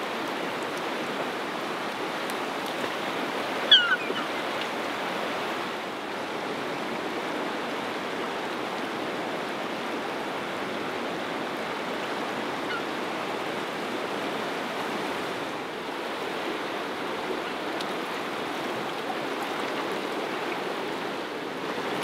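A fast river rushes steadily nearby.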